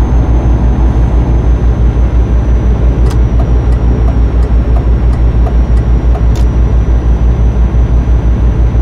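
A truck engine drones steadily with a deep, pulsing rumble.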